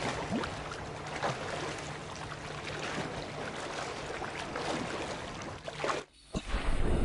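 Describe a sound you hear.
Ocean waves splash and lap at the surface.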